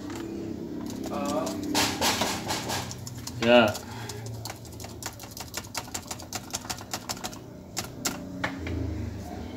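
Keyboard keys click and clack under quick fingers.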